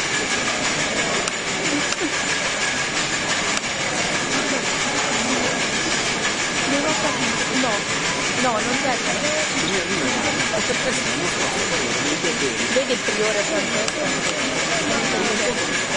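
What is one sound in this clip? A large crowd chatters and murmurs loudly in an echoing hall.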